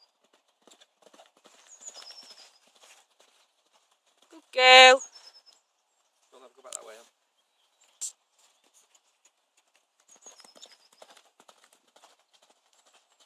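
A horse gallops with soft hoofbeats on sand.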